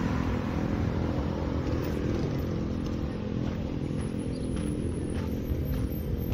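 Street traffic hums steadily in the distance outdoors.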